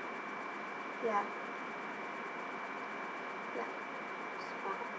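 A young girl speaks in short bursts close to the microphone.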